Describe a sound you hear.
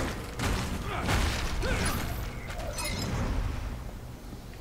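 A magical whoosh bursts as a whip strikes.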